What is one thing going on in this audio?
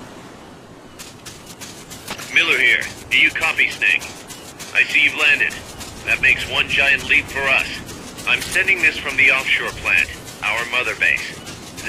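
Footsteps crunch on sand at a quick pace.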